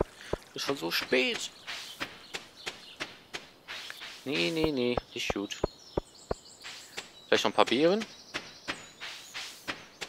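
Footsteps tap quickly along a path.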